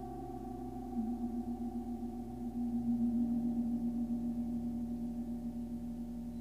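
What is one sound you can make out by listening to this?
A deep bowl hums a steady low tone that swells and pulses.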